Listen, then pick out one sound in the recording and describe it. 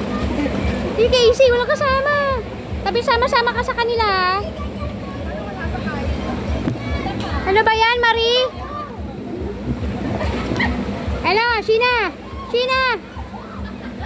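Young women and children shriek and shout playfully nearby.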